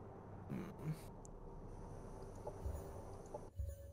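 A soft interface click sounds.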